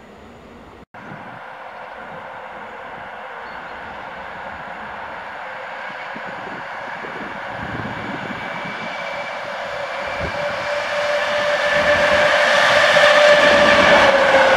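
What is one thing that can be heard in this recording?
A train approaches on a track and grows louder as it passes close by.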